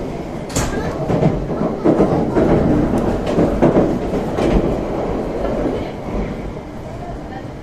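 A high-speed train rumbles along its track, heard from inside the carriage.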